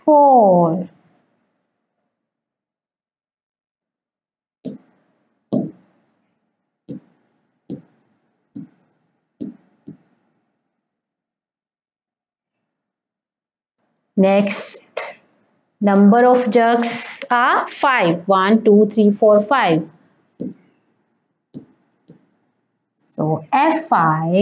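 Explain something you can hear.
A young woman speaks clearly and with animation, like a teacher, close to a microphone.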